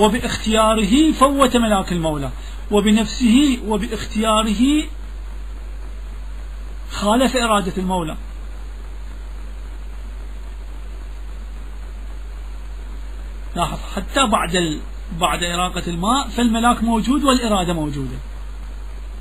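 A man chants in a melodic voice, with long pauses between phrases.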